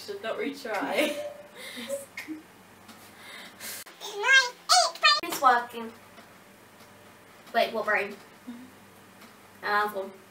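Young girls talk with animation in a high, squeaky, sped-up voice close by.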